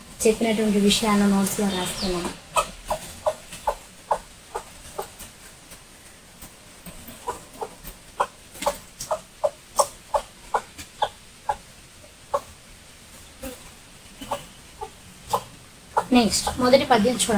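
A woman speaks clearly and close by.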